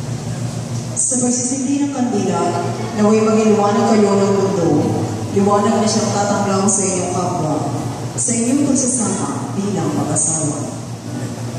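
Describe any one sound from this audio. A man chants slowly in a large echoing hall.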